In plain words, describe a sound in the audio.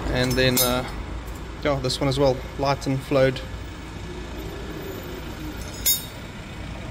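A metal valve taps lightly against its seat.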